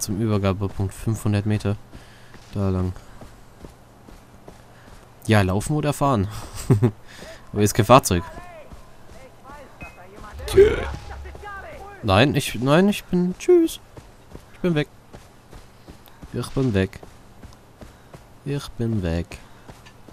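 Footsteps tread on grass and dirt.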